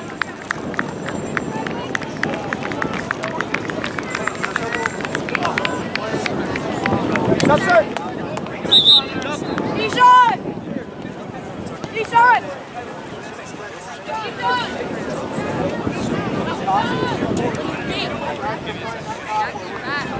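A crowd of spectators talks and cheers from the sidelines outdoors.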